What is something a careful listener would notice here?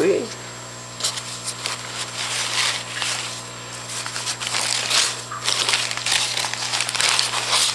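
Packing paper rustles and crinkles.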